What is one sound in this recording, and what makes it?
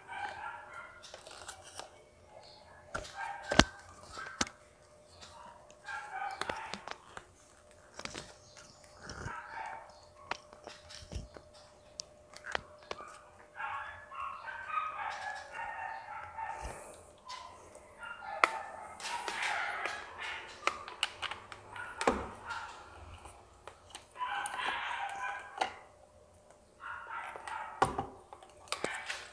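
A young man talks calmly close by.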